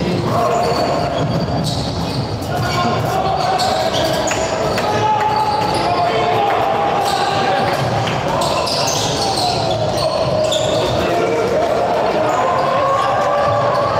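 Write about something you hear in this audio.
A ball thumps as it bounces on the floor.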